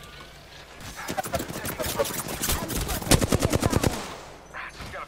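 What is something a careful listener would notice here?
Automatic gunfire rattles in rapid bursts in a video game.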